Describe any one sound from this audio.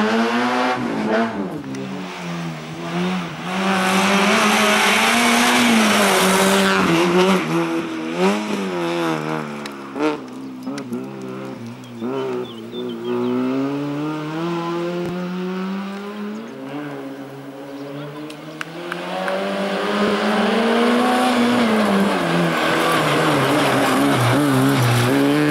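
A small rally hatchback engine revs hard through gear changes.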